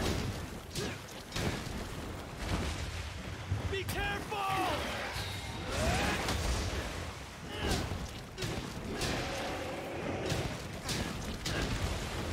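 Fiery blasts burst and crackle.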